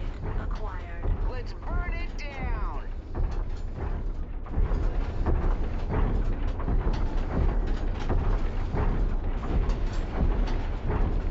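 Heavy metal footsteps thud in a steady, rhythmic stomp.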